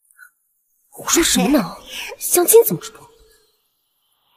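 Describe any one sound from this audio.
A young woman speaks dismissively.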